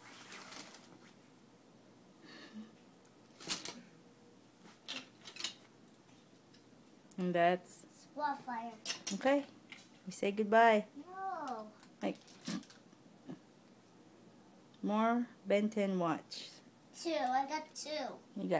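Plastic toys click and clatter as a boy handles them.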